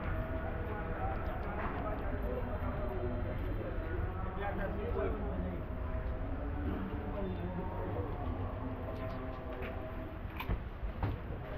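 Voices of men and women chatter nearby and around along a busy street.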